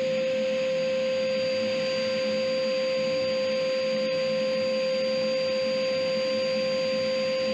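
A thickness planer runs with a loud, steady whine.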